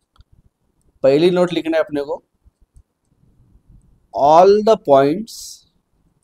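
A man speaks calmly and closely into a microphone, in short phrases.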